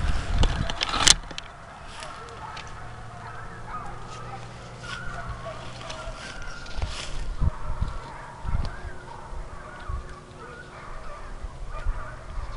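Wind gusts across an open field, rustling dry grass.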